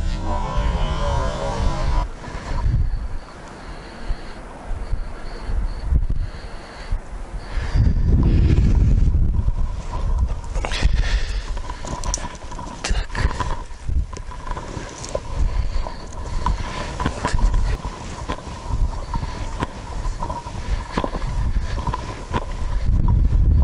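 Wind gusts and buffets outdoors in open country.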